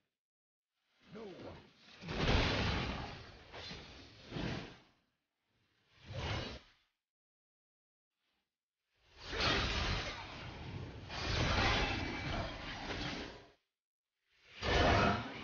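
Video game combat effects whoosh, clash and crackle in bursts.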